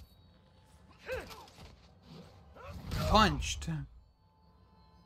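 A man grunts and shouts during a fight.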